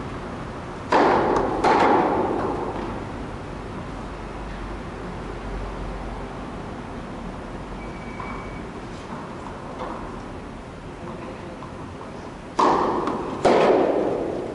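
A tennis racket strikes a ball with a loud pop that echoes through a large hall.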